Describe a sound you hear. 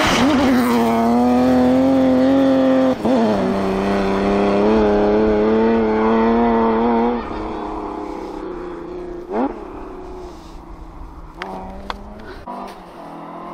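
A rally car engine roars loudly at high revs, then fades into the distance.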